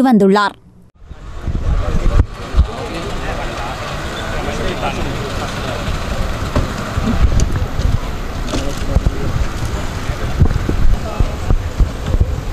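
A crowd of men talk over one another close by, outdoors.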